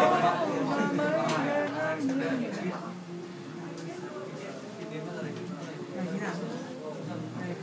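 A man sings into a microphone nearby.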